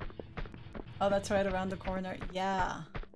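A young woman talks close to a microphone in a drawn-out, sing-song way.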